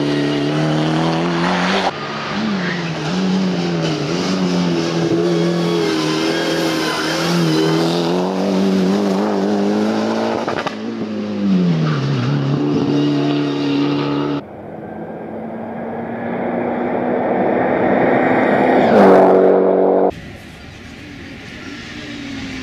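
A rally car engine revs hard and changes gear as the car speeds through bends.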